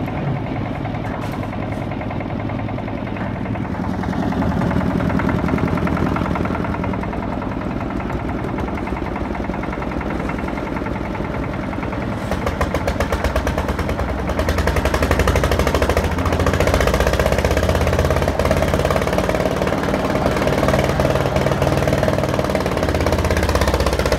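A diesel engine chugs steadily close by.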